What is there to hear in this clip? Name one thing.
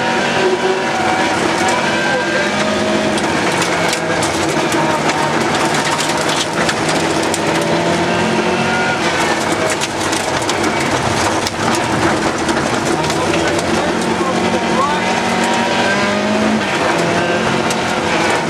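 Gravel and stones clatter against the underside of a car.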